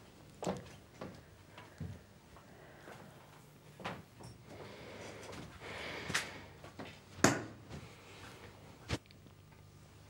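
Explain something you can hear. Heeled footsteps knock on a wooden floor.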